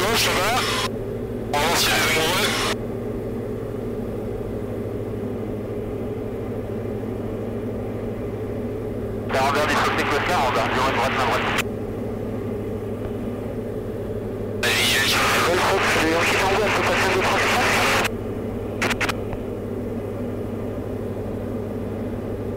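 A small plane's engine drones steadily from inside the cabin.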